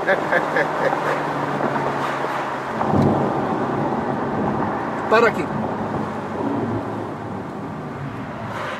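Wind rushes past an open car.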